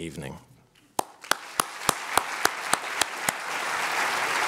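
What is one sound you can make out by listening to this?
An older man claps his hands.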